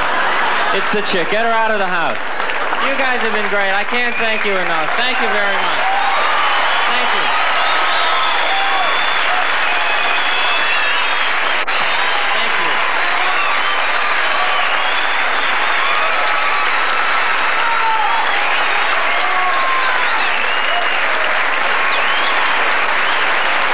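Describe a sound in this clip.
A large audience applauds and cheers loudly.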